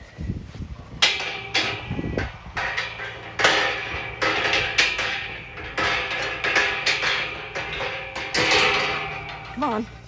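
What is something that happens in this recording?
Wind gusts outdoors, rumbling into the microphone.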